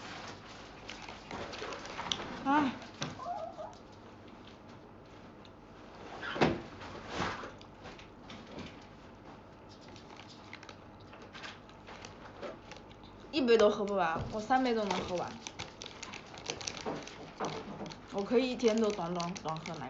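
A crisp snack bag rustles and crinkles.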